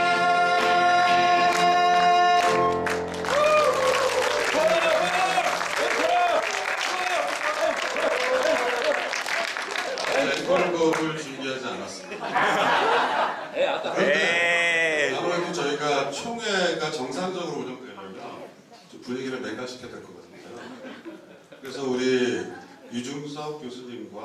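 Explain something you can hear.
A small band plays a tune in an echoing hall.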